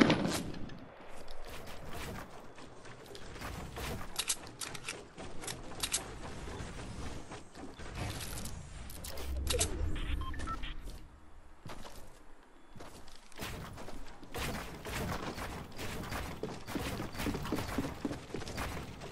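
Game building pieces snap into place with quick sharp clacks.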